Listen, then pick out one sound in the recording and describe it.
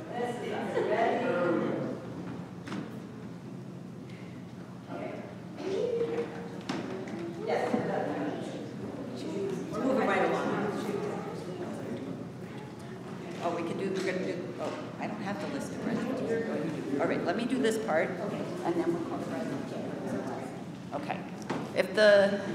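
A woman speaks into a microphone in a large echoing hall.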